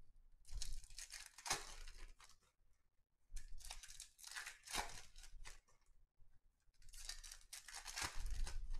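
Foil card wrappers crinkle and rustle as they are torn open.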